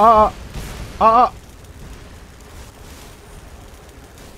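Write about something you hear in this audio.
Magic lightning crackles and sizzles.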